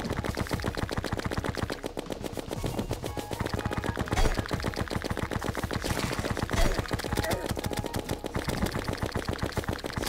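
Rapid electronic weapon shots crackle in quick bursts.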